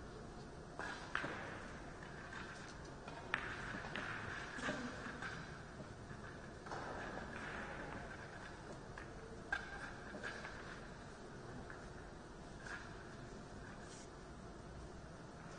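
Billiard balls clack together as they are gathered and racked on a table.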